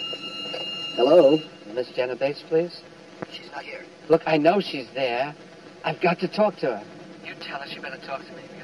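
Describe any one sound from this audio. A man speaks quietly into a telephone.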